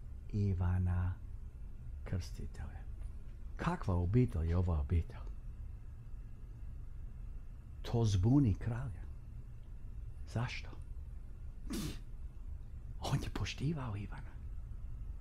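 A middle-aged man speaks with animation into a close microphone, with pauses between phrases.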